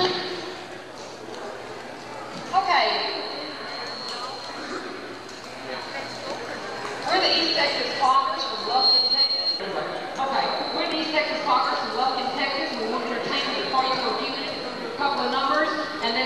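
Dancers' shoes tap and shuffle on a wooden floor.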